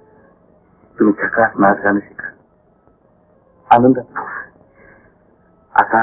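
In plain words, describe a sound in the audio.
A man speaks calmly, heard through an old film soundtrack.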